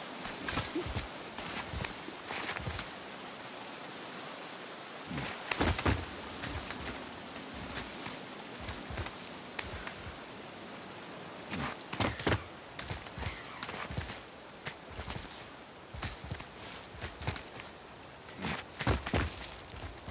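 Hands and boots scrape and thud against rock.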